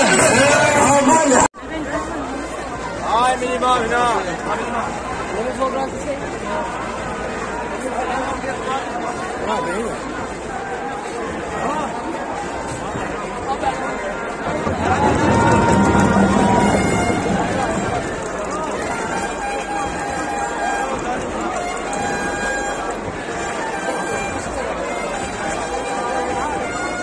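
A large crowd of men chants and murmurs outdoors.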